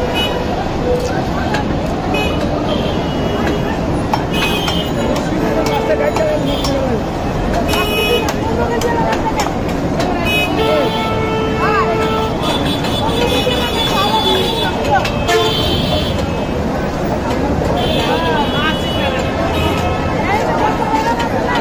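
Fish scales scrape and rasp against a fixed blade.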